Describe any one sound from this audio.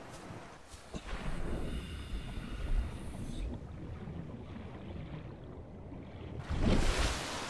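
Water churns and bubbles around a swimmer underwater.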